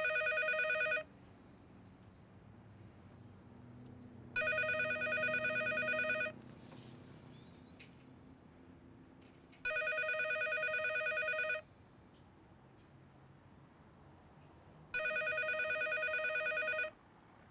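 A telephone rings repeatedly nearby.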